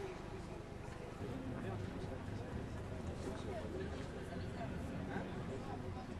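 A car engine idles close by with a low, steady rumble.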